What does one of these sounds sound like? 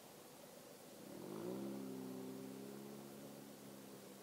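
A motorcycle engine revs up and pulls away.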